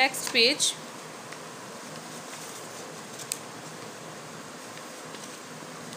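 Paper pages rustle as a book's page is turned.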